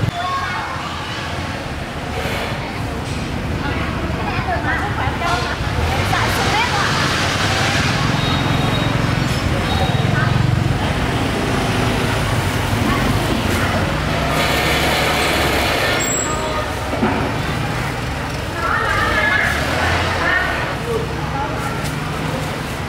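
Glass jars clink as they are handled.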